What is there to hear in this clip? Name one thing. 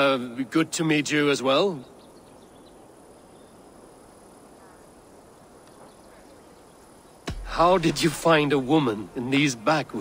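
A man speaks calmly in a deep voice, close by.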